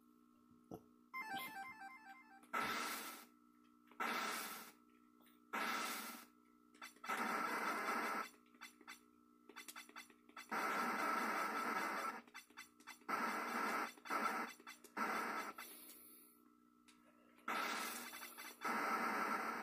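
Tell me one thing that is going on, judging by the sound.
Retro video game music and bleeping sound effects play through a television speaker.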